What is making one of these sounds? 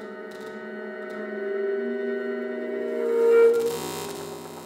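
Sustained electric guitar and steel guitar tones swell and ring.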